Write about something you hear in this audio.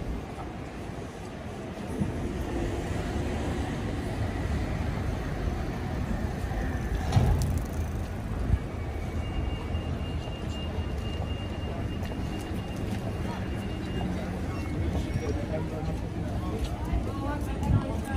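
A busy pedestrian street murmurs with distant chatter and bustle outdoors.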